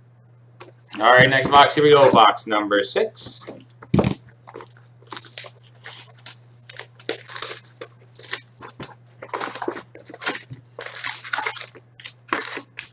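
A cardboard box rustles and knocks as hands open it.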